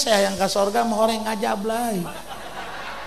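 A man chants in a long, sustained melodic voice through a microphone.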